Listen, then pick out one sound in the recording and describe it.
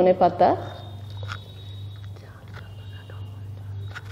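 A hand mixes herbs into cooked rice with soft squelching rustles.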